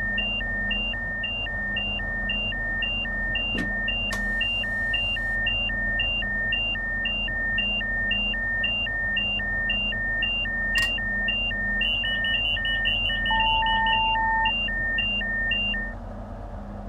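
A warning alarm beeps rapidly and steadily in a train cab.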